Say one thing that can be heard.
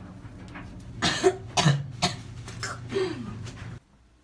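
A young woman shrieks loudly.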